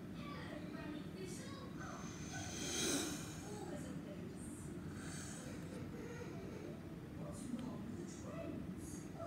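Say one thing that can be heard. A globe spins on its stand with a faint rubbing whir.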